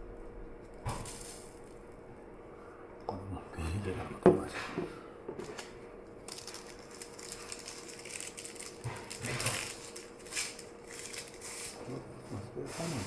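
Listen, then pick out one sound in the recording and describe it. Plastic packaging rustles and crinkles.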